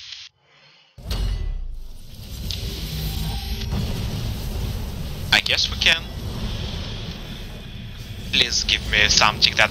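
A deep whooshing rumble swells up and roars on.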